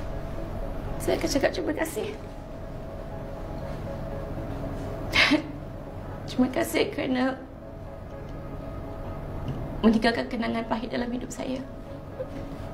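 A woman speaks tearfully, her voice trembling.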